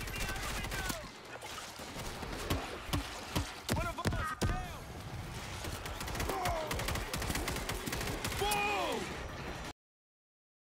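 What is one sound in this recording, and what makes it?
A horde of zombies snarls and screeches.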